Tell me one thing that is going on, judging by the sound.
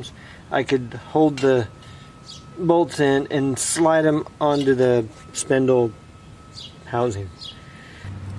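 A man talks calmly and close by, explaining.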